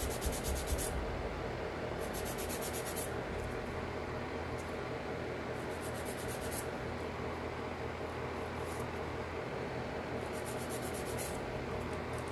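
A nail file rasps against a fingernail in quick strokes.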